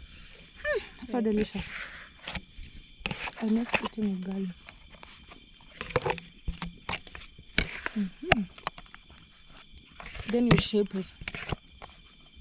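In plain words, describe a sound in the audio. A plastic bowl knocks and scrapes against a metal pot.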